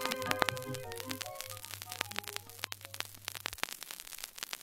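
Music plays from an old vinyl record and fades out.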